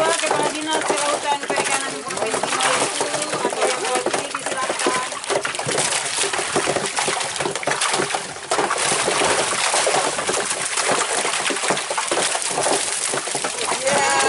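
Fish splash and thrash in shallow water.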